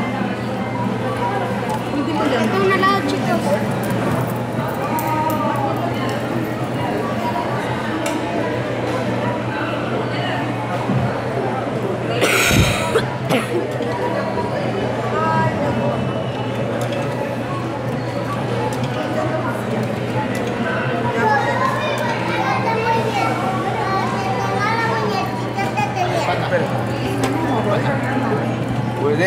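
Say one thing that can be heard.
A woman talks close to a handheld microphone.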